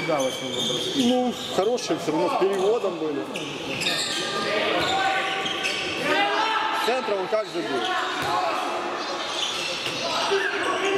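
Young men shout to each other in an echoing sports hall.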